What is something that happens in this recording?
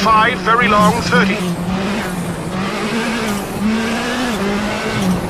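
A rally car engine roars steadily at high revs.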